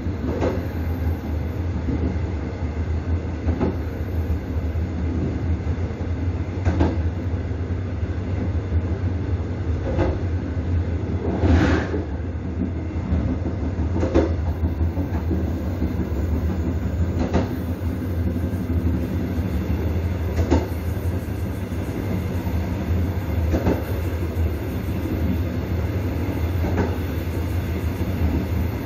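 A train rumbles along the track.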